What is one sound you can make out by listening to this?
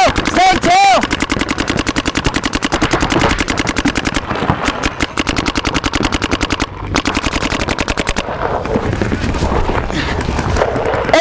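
Paintball markers fire in rapid bursts of sharp pops.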